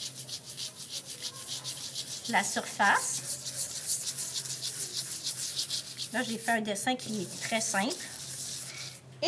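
A cloth pad dabs rapidly and softly on a surface.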